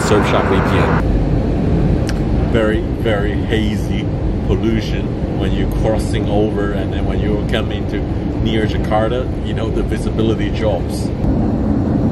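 A man talks to the microphone up close, casually.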